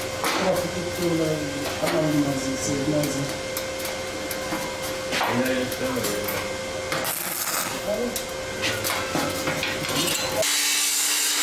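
Metal knocks and scrapes against a metal sheet.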